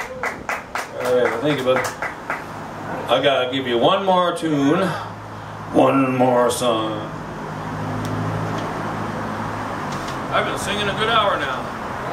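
A man sings into a microphone through a loudspeaker outdoors.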